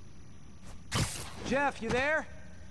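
A rope-like line whooshes through the air.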